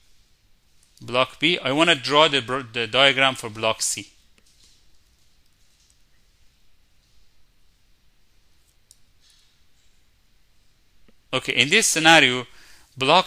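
A man explains calmly and clearly, heard close through a microphone.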